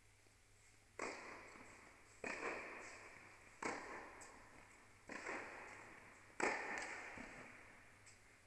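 Tennis balls are struck with sharp pops that echo around a large indoor hall.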